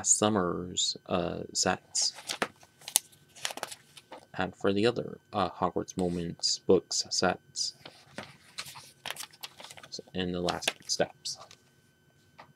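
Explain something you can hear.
Paper pages rustle and flip as a booklet is handled.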